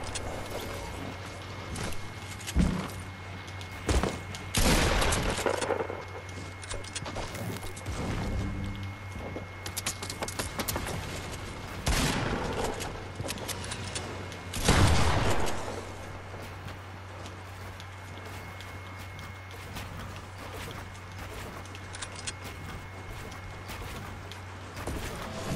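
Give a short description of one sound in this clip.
Wooden walls and ramps clatter quickly into place.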